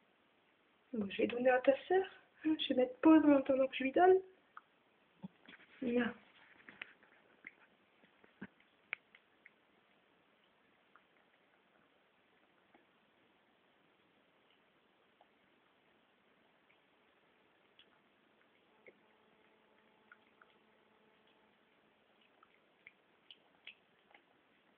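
A kitten chews and laps wet food softly, close by.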